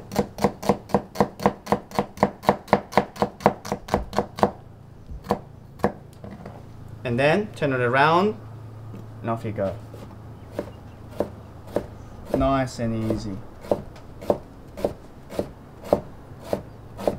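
A knife chops quickly against a wooden board with sharp, rhythmic knocks.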